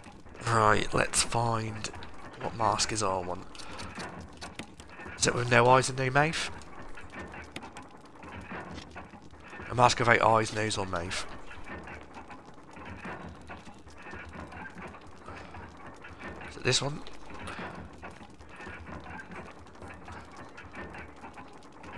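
A fire crackles softly in a brazier.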